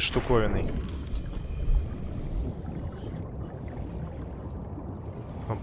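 Muffled underwater rumbling and bubbling fills the background.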